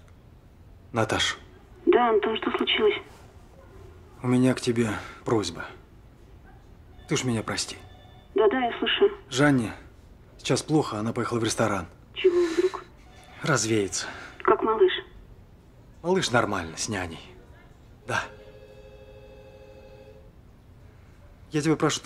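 A middle-aged man talks calmly into a phone, close by.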